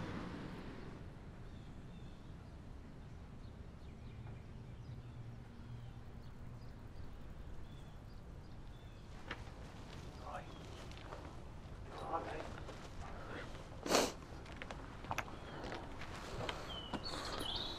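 Footsteps walk along a paved path outdoors.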